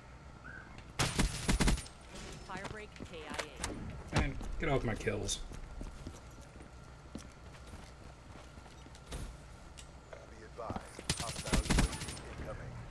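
Rapid gunfire bursts from a video game.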